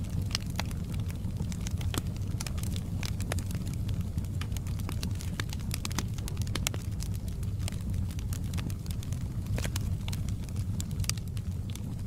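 Logs crackle and pop in a fire.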